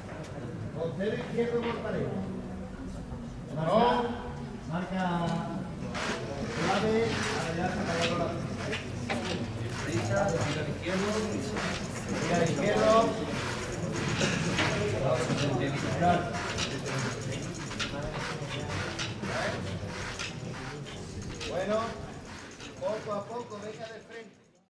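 A crowd of men and women chatter close by.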